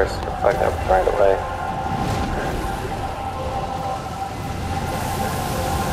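Hooves splash through shallow water.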